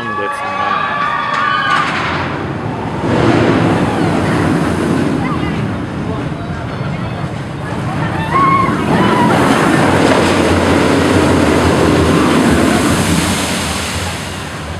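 A roller coaster rumbles and roars along its track.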